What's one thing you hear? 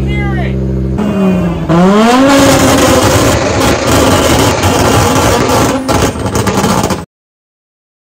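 A race car engine revs up loudly and roars.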